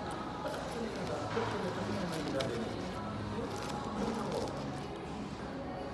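A paper wrapper rustles and crinkles.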